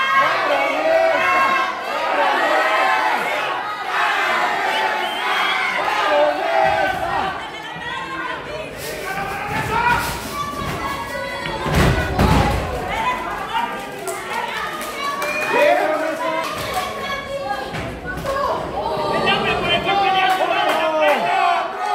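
A crowd of spectators cheers and shouts in an echoing hall.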